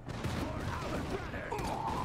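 An explosion bursts with a sharp crack.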